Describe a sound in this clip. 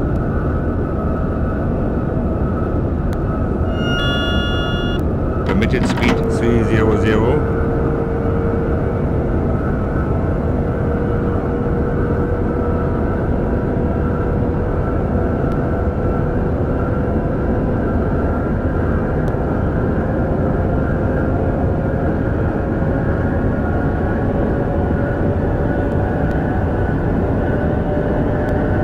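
A train rumbles steadily along the rails at speed.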